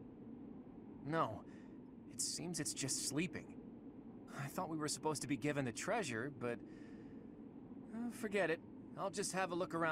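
A young man talks casually into a close microphone.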